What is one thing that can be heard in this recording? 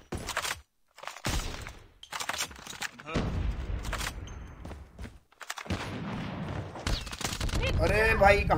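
Sniper rifle shots crack out in bursts.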